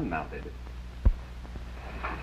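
A sudden thump sounds as a man lunges.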